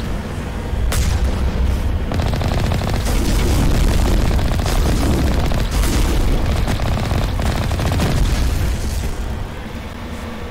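A heavy vehicle engine rumbles low as it drives over rough ground.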